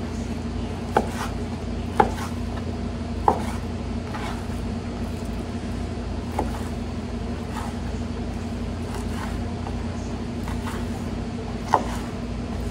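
A knife taps and thuds against a wooden board while cutting meat.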